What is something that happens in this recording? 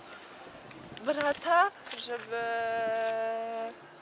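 A young woman speaks calmly close by, outdoors.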